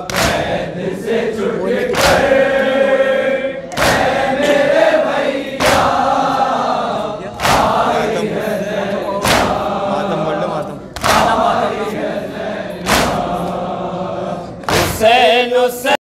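Many men beat their chests in unison with heavy rhythmic thumps.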